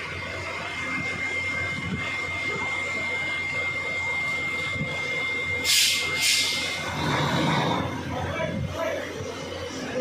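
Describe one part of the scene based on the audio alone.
A ship's engine rumbles steadily.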